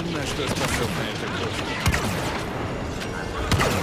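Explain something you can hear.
Laser blasters fire sharp shots in quick bursts.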